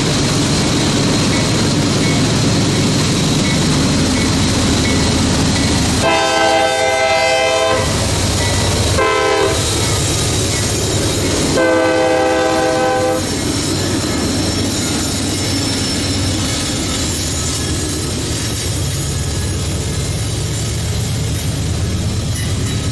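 A freight train's diesel engines rumble loudly as the train passes close by.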